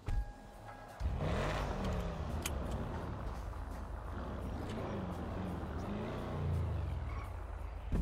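A car engine revs and the car drives off.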